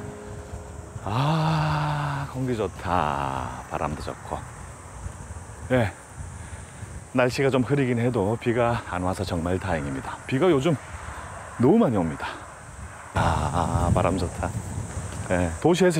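A middle-aged man talks casually nearby, outdoors.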